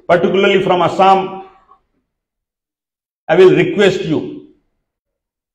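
A man speaks into a microphone over loudspeakers in a large hall, in short bursts.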